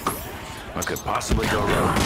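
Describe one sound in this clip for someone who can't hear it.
A magic staff fires a crackling energy blast.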